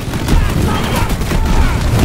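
A blast bursts with a loud whoosh.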